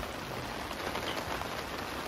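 A metal kettle lid clinks.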